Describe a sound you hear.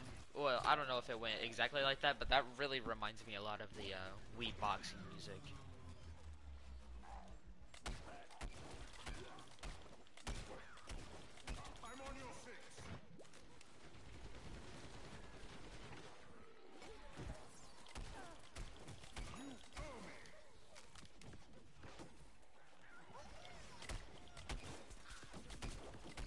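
Rapid shots from a video game weapon pop and crackle.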